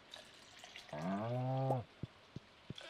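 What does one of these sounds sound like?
A cow moos.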